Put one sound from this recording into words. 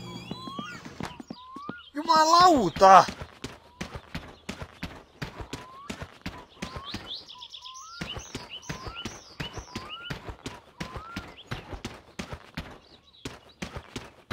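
Footsteps crunch steadily on a gravel path outdoors.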